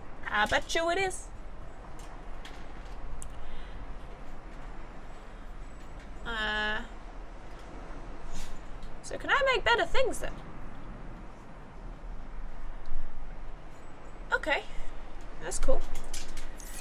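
A young woman speaks casually into a microphone in short bursts.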